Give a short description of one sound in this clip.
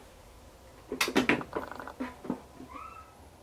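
A plastic lid clicks and thuds shut.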